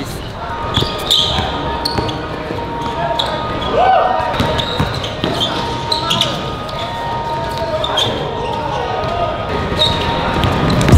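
Sneakers squeak sharply on a court.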